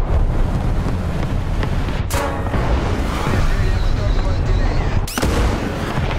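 A cannon fires with a loud boom.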